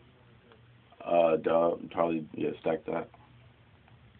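A young man sings closely into a microphone.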